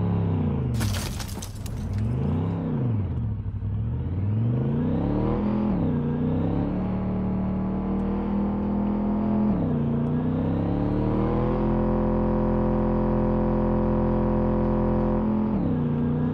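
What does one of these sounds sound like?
A car engine hums loudly, revving up and down and then holding steady.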